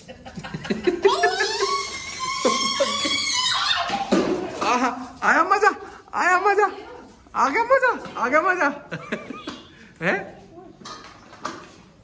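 A young child talks and squeals excitedly close by.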